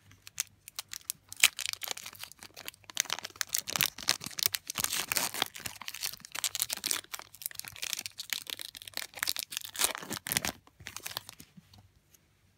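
A foil wrapper crinkles and tears loudly up close.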